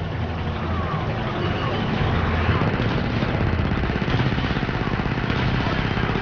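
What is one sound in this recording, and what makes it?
Laser blasters fire in rapid bursts.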